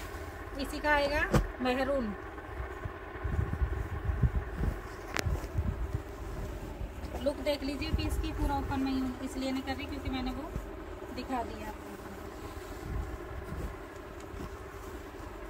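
Fabric rustles and crinkles as it is handled.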